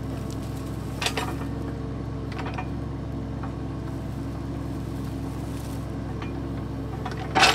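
An excavator bucket scrapes and crunches into gravel.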